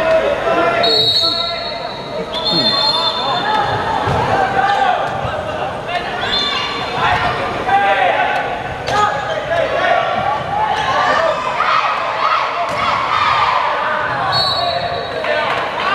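A referee's whistle blows short shrill blasts.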